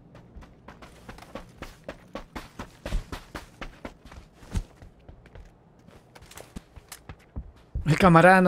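Footsteps crunch quickly on sandy ground.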